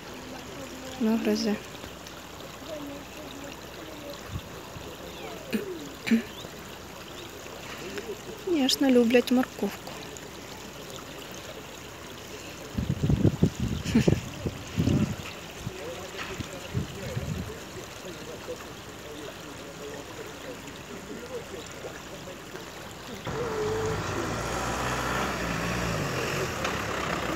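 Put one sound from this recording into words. A shallow stream trickles softly.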